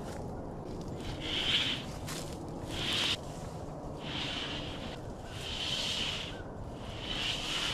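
Thin metal sheets scrape and rattle as they are slid over one another.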